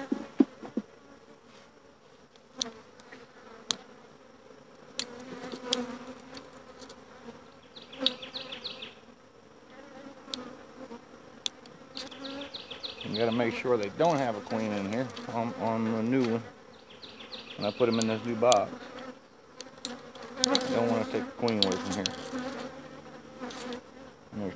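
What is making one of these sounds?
Bees buzz steadily around the hive.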